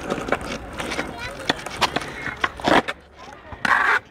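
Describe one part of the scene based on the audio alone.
A skateboard clacks and grinds along a ledge.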